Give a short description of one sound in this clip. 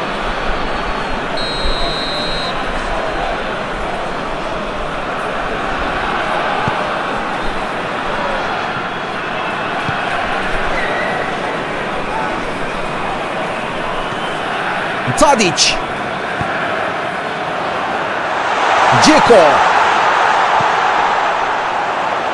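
A large stadium crowd roars steadily, swelling louder near the end.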